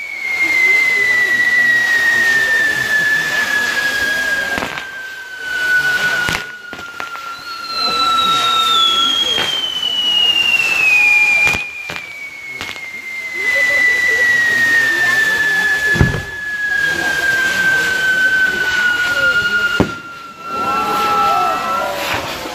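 Spinning fireworks whistle shrilly, slowly falling in pitch.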